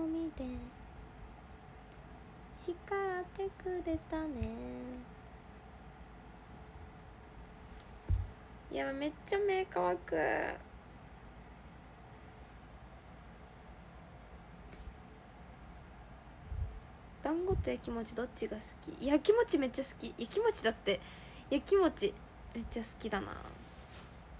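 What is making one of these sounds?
A young woman talks softly and casually close to a microphone.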